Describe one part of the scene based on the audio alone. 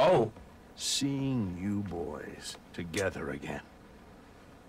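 A middle-aged man speaks warmly, close by.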